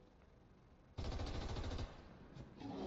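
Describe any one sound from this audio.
A gun fires a loud burst.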